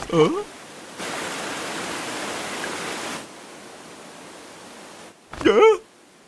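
Water rushes and splashes over a waterfall.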